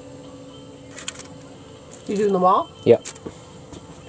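Food is set down with soft taps in a foil tray.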